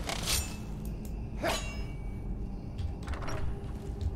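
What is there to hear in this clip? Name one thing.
A heavy wooden door swings open with a creak.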